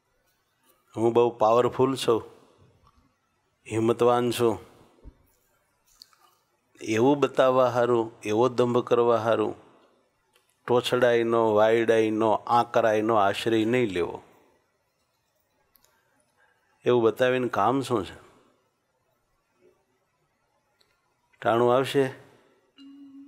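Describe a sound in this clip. A middle-aged man speaks calmly and slowly into a close microphone, in short phrases with pauses.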